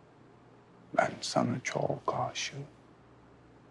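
A young man speaks softly up close.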